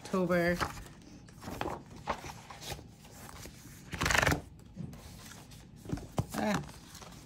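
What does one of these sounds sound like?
Paper pages rustle and flap as they are turned by hand.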